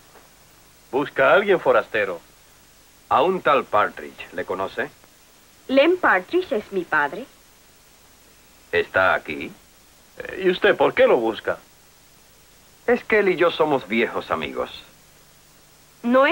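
A young man speaks in reply nearby.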